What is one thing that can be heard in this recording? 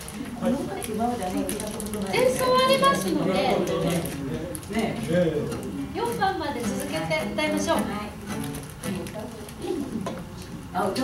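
A man plays a woodwind instrument.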